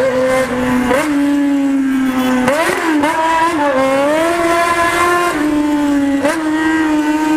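A motorcycle engine drones close by, its pitch jumping up and down as it shifts gears.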